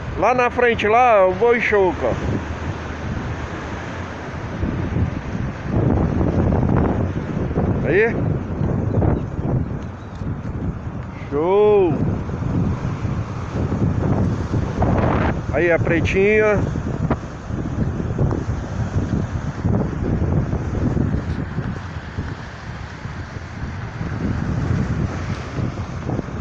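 Wind gusts outdoors in strong rumbling bursts.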